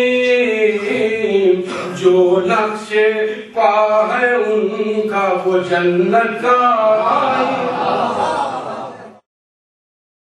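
A middle-aged man speaks through a microphone in a steady, chanting voice.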